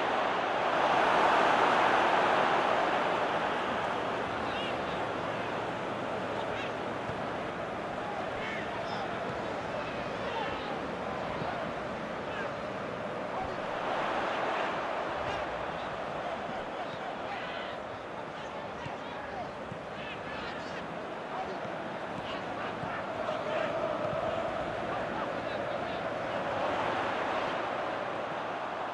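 A large stadium crowd roars and swells.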